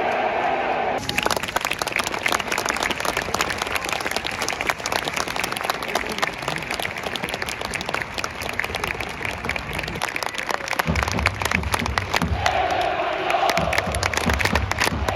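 Many spectators clap their hands in quick, uneven bursts.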